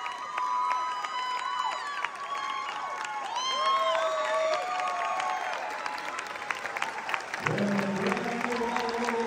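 A crowd applauds and claps hands in a large echoing hall.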